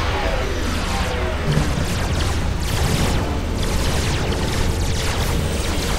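Laser guns zap and crackle in a battle.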